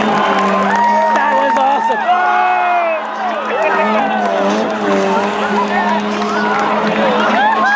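Car engines roar and rev on a racetrack.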